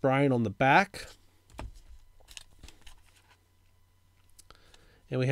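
Plastic card sleeves rustle and click as cards are handled.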